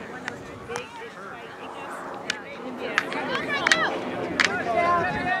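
Field hockey sticks clack sharply against a ball and against each other.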